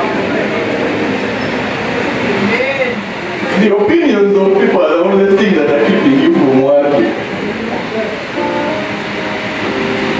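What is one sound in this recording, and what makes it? A man speaks with animation into a microphone in an echoing hall.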